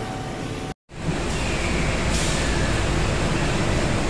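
Molten metal pours into moulds with a hiss.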